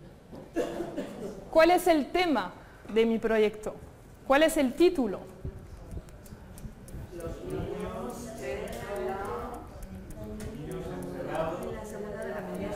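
A young woman speaks calmly to a room, heard through a microphone.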